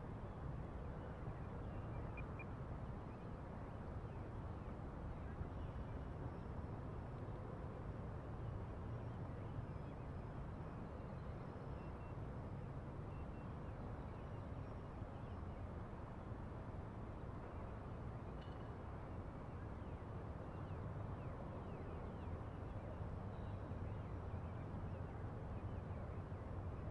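Wind rushes steadily and loudly past outdoors.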